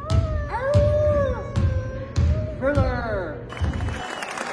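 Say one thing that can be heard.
Two young people howl like wolves through face masks in an echoing hall.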